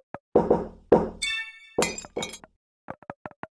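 Glass shatters with a bright crash.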